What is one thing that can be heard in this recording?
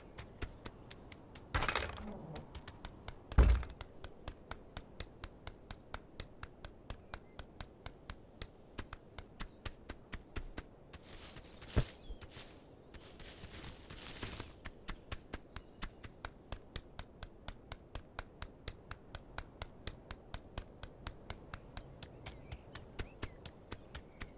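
A goose's webbed feet patter quickly and steadily as it waddles.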